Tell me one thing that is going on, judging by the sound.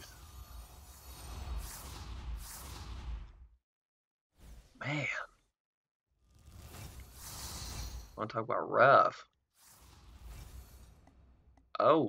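Whooshing effects sweep past as game cards flip open.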